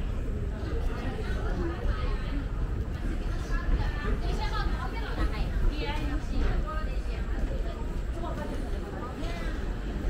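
Men and women chat casually nearby.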